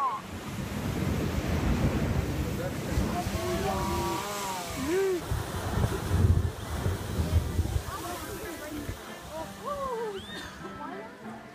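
Young people shout and cheer excitedly close by.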